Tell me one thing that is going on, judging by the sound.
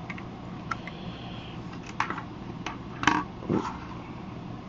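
Hard plastic toys click and knock as they are handled.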